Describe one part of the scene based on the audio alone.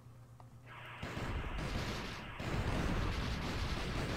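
Arcade game gunfire rattles rapidly and loudly.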